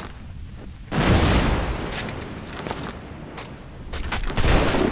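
Rain patters down outdoors.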